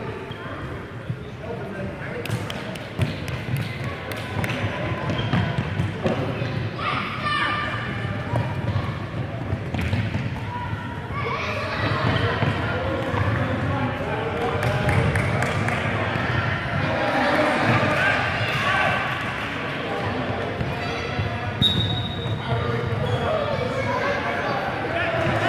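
Children shout and call out excitedly, echoing in a large hall.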